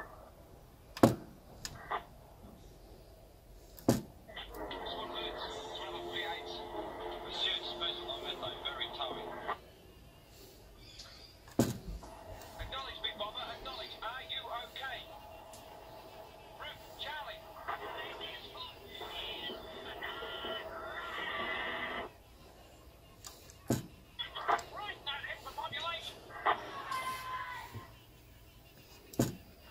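A toggle switch clicks sharply.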